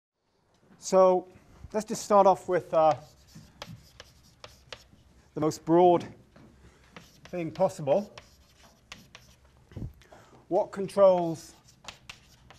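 A middle-aged man speaks calmly and close to a microphone, in short phrases.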